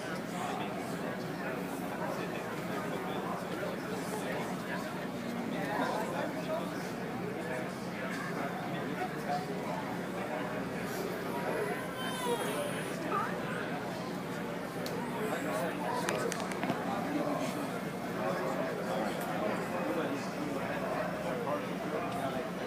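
A crowd of adults chatters nearby.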